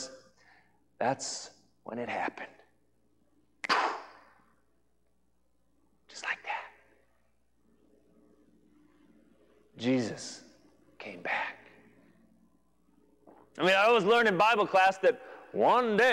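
A man speaks expressively into a clip-on microphone, with pauses between bursts of speech.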